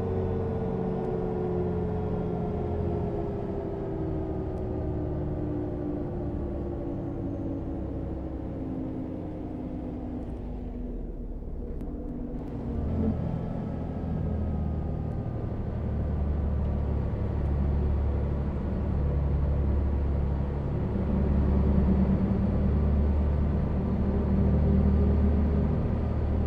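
A bus rolls along a road with a low rumble.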